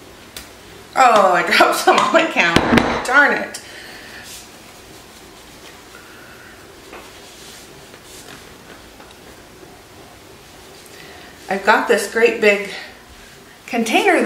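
A woman talks calmly and cheerfully nearby.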